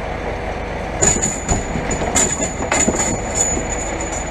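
Heavy logs thud and knock onto a truck bed.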